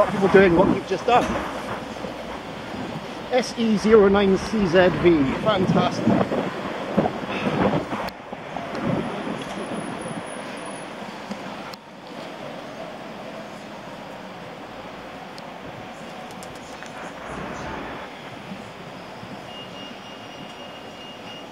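Wind rushes past while cycling outdoors.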